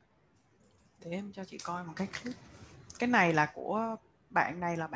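A young woman speaks calmly over an online call.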